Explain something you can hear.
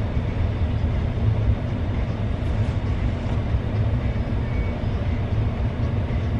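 A car engine hums steadily with road rumble from inside a moving car.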